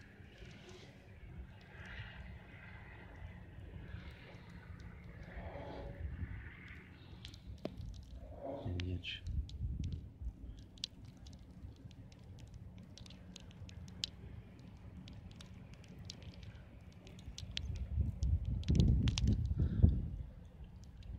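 Wind gusts into the microphone outdoors, rumbling louder near the end.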